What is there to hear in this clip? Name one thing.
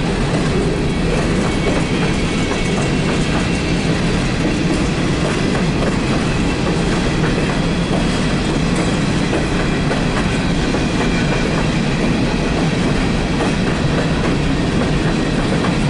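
A long freight train rumbles and clatters steadily past.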